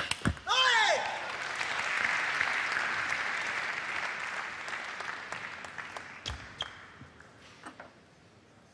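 A crowd applauds and cheers loudly in a large hall, then slowly fades.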